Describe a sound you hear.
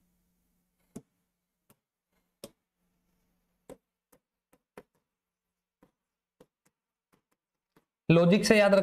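A marker taps and scratches on a board.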